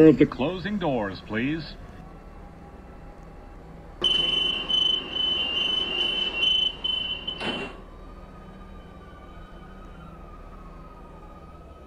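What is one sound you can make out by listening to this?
A subway train pulls into a station with a whining electric motor.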